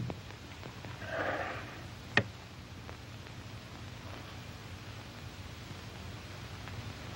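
A man speaks quietly to himself.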